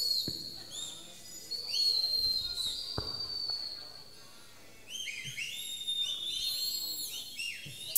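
Bare feet stamp on a wooden stage.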